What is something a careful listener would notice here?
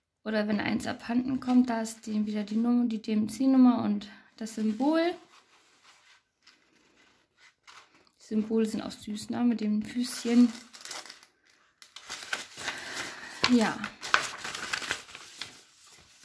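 Paper sheets rustle and crinkle as they are leafed through.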